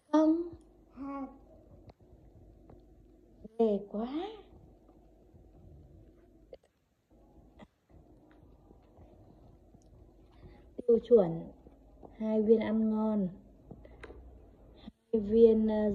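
A little girl speaks in short, high-pitched bursts close by.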